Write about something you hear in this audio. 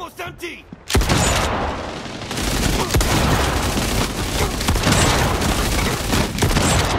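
Automatic gunfire rattles loudly and rapidly.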